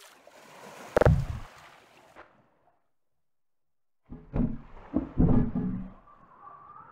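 A hollow plastic barrel thuds against a hard surface.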